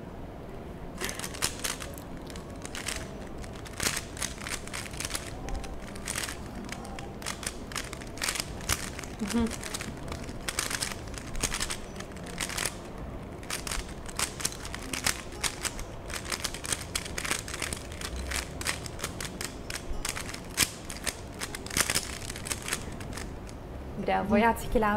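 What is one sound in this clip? Plastic puzzle cube pieces click and clack rapidly as they are twisted.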